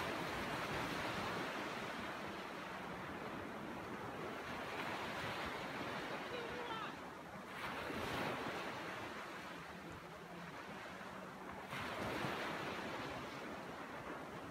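Small waves break and wash up onto the shore, surging and ebbing.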